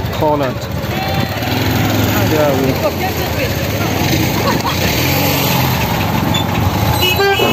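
A motorcycle engine idles with a steady hum.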